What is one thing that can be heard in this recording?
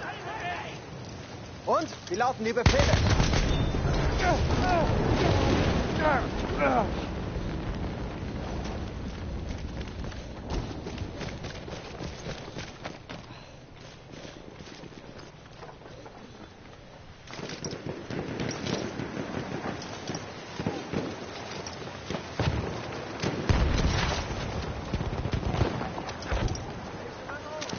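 Rifle shots crack in bursts.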